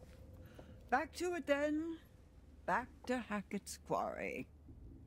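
An elderly woman speaks slowly in a low voice.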